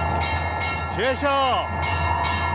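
An elderly man calls out loudly.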